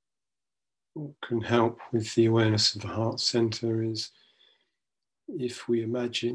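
A middle-aged man speaks slowly and calmly into a microphone, heard as if over an online call.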